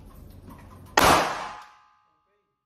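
A pistol shot cracks loudly and rings out in a small room.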